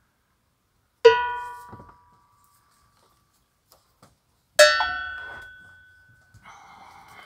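A metal cymbal is struck and rings out, then fades.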